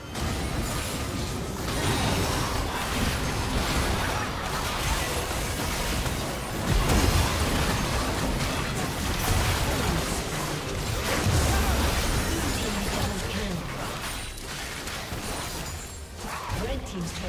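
Spell effects whoosh, crackle and burst in a busy game fight.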